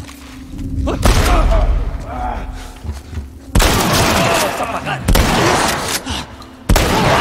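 A gun fires several loud shots that echo.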